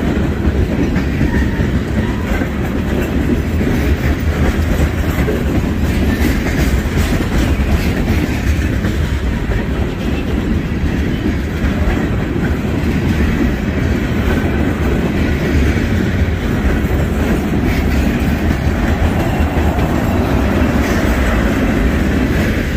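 A long freight train of tank cars rumbles past close by.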